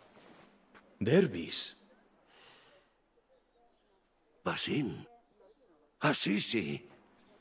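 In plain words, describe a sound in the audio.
A middle-aged man calls out warmly with excitement.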